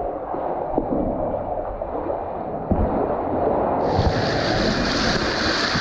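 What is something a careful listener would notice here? A jet ski engine roars steadily.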